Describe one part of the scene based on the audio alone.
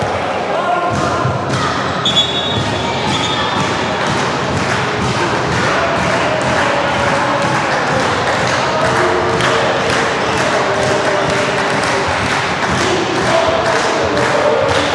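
Spectators clap and drum in a steady rhythm.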